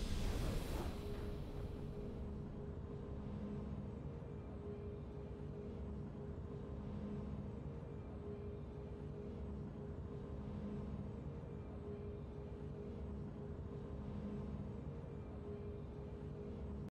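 A calm, triumphant tune plays steadily.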